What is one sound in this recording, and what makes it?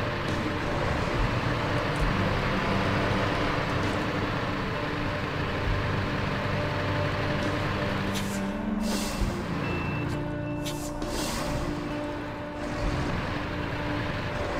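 Tyres crunch through snow and rock.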